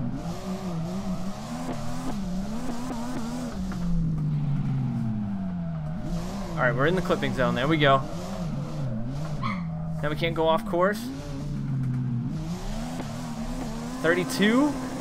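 A car engine revs and whines up and down in pitch.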